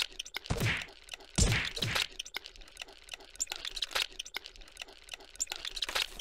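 A cartoon rag doll thuds and bounces against a metal floor.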